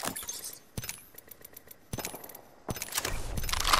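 A video game menu clicks as items are picked up.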